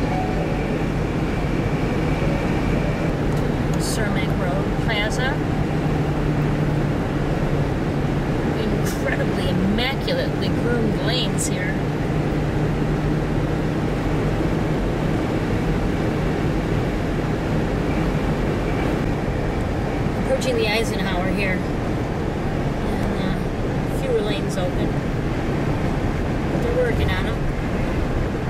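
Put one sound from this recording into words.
A car engine hums steadily as tyres roll over a highway.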